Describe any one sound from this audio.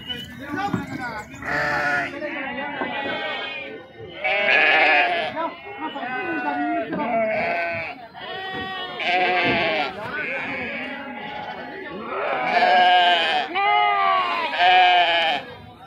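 A flock of goats bleats loudly and continuously close by.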